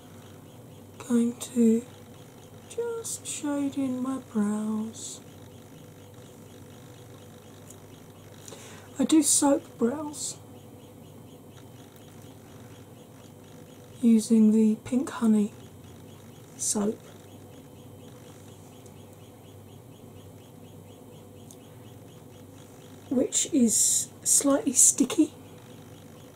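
A woman speaks calmly and close to the microphone, in short bursts with pauses.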